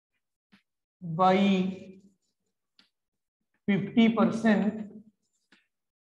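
A man speaks calmly and clearly close by, in short phrases.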